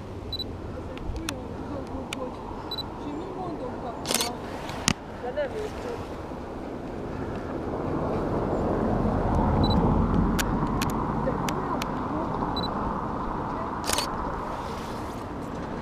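Wind buffets the microphone outdoors, swelling and easing.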